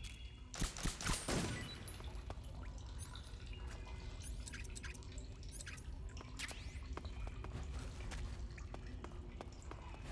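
Leaves and grass rustle as someone crawls through undergrowth.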